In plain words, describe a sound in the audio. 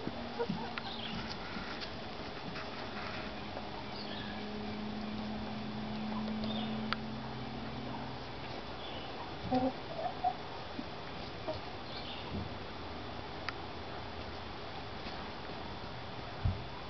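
Chickens scratch and peck at dry litter.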